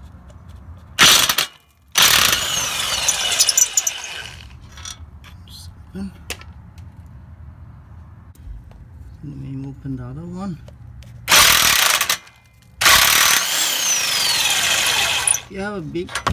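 An air ratchet whirs in loud bursts as it spins a bolt.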